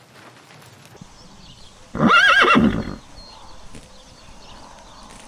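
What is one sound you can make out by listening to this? Horses tear and chew grass close by.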